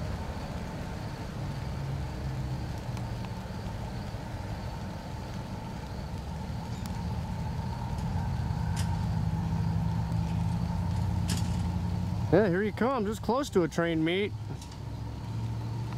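A freight train rumbles past and fades into the distance.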